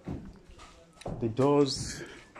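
A man talks nearby in a relaxed voice.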